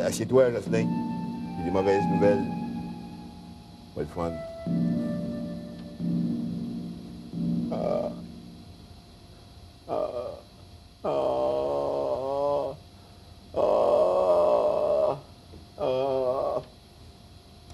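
A middle-aged man talks back loudly nearby.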